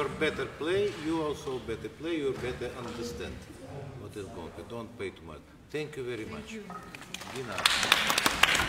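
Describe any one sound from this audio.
A piano plays in a large echoing hall.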